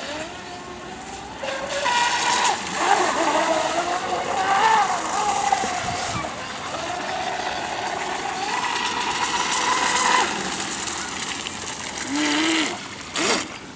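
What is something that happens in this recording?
Water splashes and hisses behind a fast model boat.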